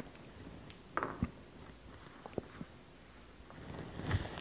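Dice clatter onto a table.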